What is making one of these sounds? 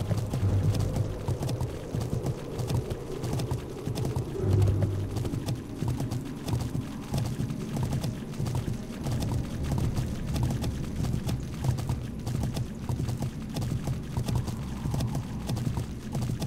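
A horse's hooves clop steadily on a stone path.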